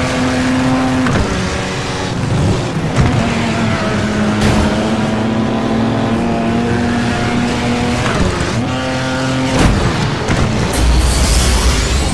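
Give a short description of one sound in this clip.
Tyres skid and crunch over loose gravel.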